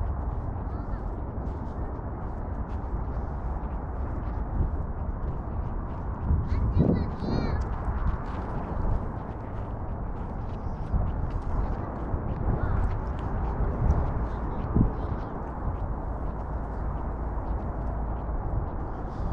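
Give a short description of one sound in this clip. Wind blows steadily across an open hillside.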